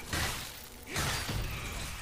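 Metal blades clash with a sharp ringing clang.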